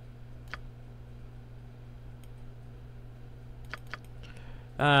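Soft interface clicks sound as menu items are selected.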